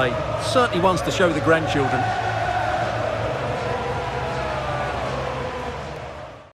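A large stadium crowd cheers loudly.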